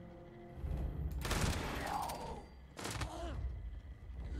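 Gunshots ring out sharply.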